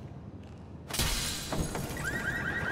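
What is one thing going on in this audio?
A car door opens with a loud clunk.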